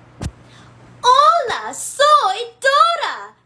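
A young woman speaks animatedly, close to the microphone.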